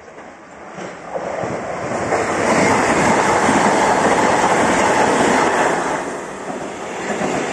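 A train roars past at speed on the rails.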